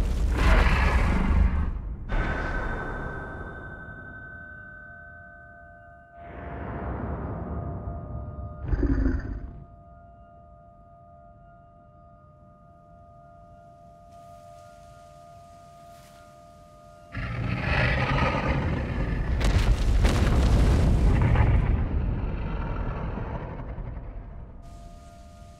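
A huge beast roars loudly and rumbles.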